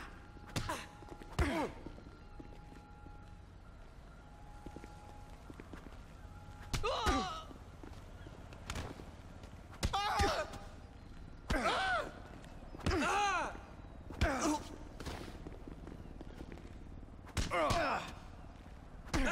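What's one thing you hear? Men grunt and cry out in pain.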